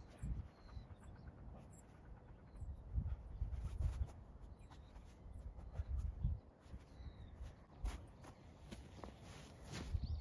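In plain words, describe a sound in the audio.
Wind blows in low gusts outdoors.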